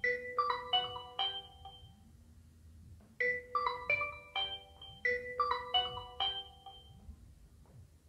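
A phone rings with a bright repeating tune.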